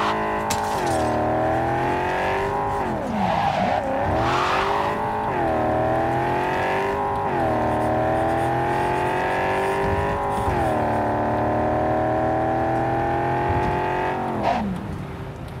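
A car engine revs hard and shifts up through the gears.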